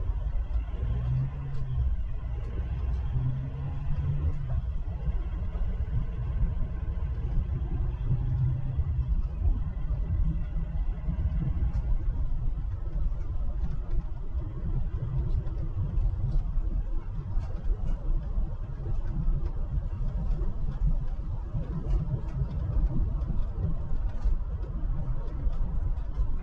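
A car rumbles steadily as it drives along a road.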